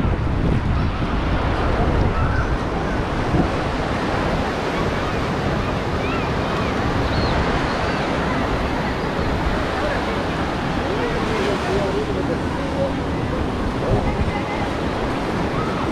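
A crowd of people chatters and calls out on a busy beach.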